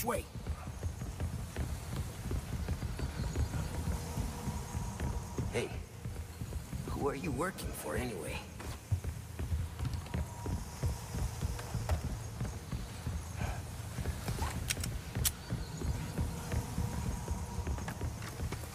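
Heavy footsteps thud quickly on wooden stairs and floorboards.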